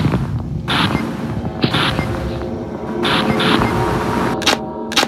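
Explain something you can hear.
Crackling static hisses in short bursts.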